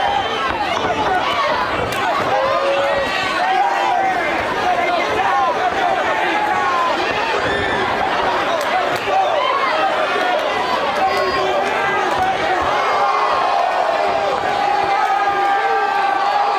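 Boxing gloves thud against bodies.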